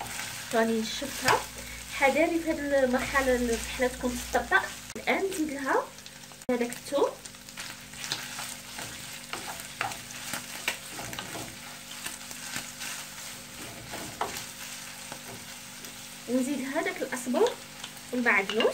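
A wooden spatula scrapes and clacks against a frying pan.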